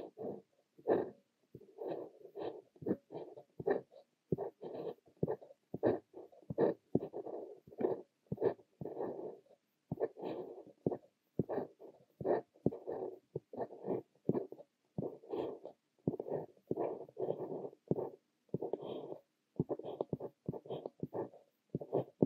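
A fountain pen nib scratches on paper in short, close strokes.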